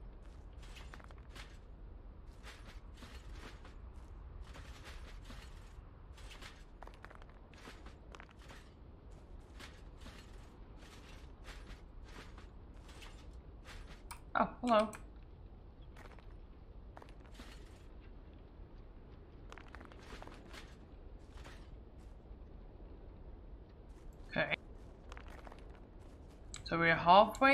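Footsteps crunch on dry grass at a steady walking pace.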